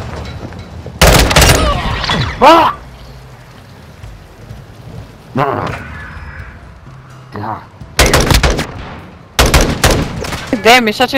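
Rapid rifle gunfire rattles in short bursts.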